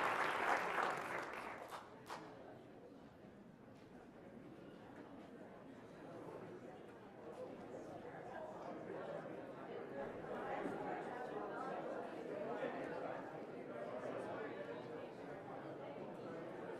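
A crowd of men and women chat and greet each other all at once in a large echoing hall.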